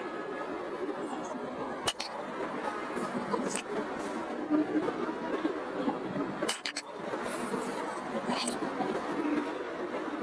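Dumbbells clank against the floor.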